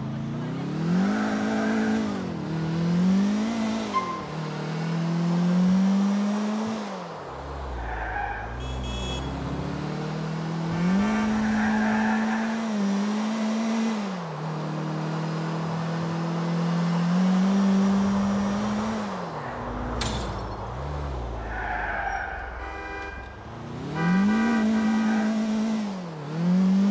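A car engine revs up and down as the car speeds along.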